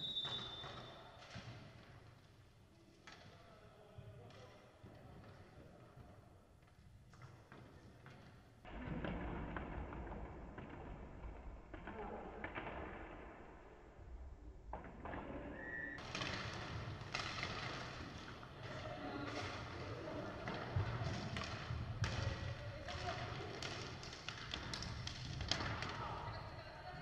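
Skate wheels roll and scrape on a hard floor in a large echoing hall.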